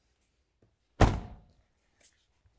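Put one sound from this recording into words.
A metal compartment door slams shut with a bang.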